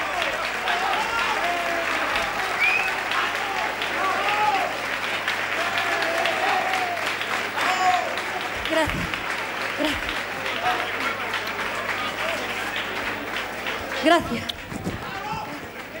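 A large crowd cheers and claps in an echoing hall.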